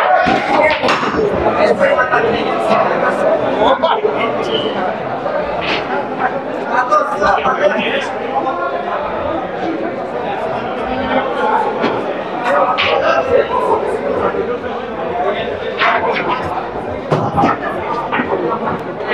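A crowd of men and women chatters loudly in an echoing hall.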